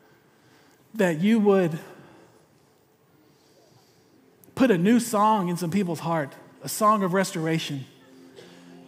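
A man speaks with animation into a microphone, his voice filling a large hall.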